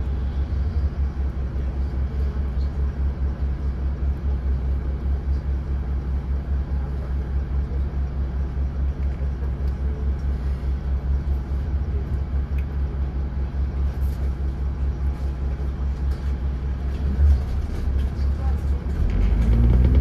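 A bus engine idles with a low, steady throb.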